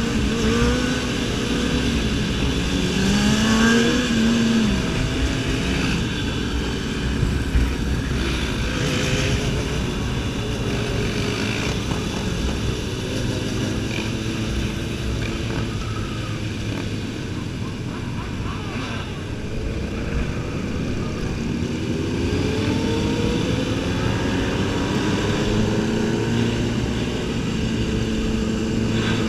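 Other motorcycles' engines rumble and rev nearby.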